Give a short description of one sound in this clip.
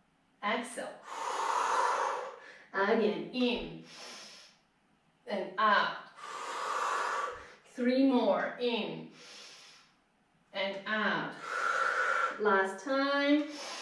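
A woman breathes out deeply.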